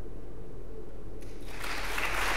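A grand piano plays in a large echoing hall.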